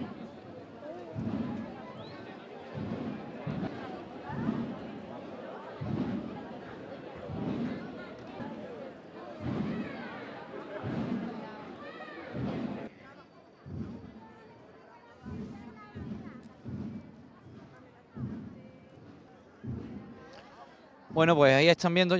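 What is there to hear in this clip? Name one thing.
Slow, steady footsteps shuffle along in a procession.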